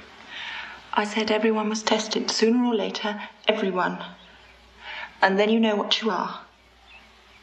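A young woman speaks close by in an anxious, pleading tone.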